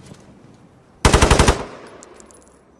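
A rifle fires a short, rapid burst that echoes outdoors.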